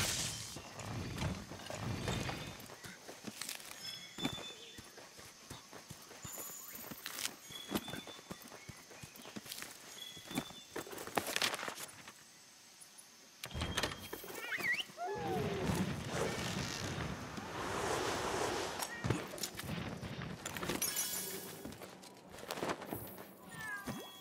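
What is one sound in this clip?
Heavy footsteps crunch on rough ground.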